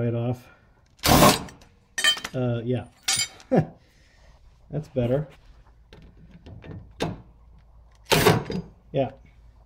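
A cordless impact driver hammers briefly on a bolt.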